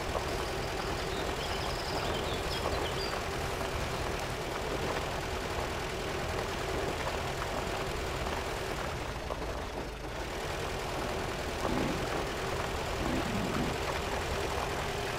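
An off-road engine rumbles and strains steadily at low speed.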